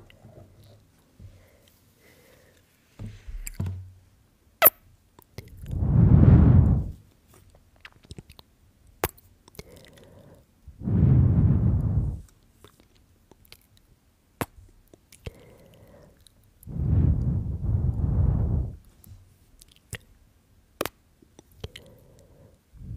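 A young woman whispers softly, very close to a microphone.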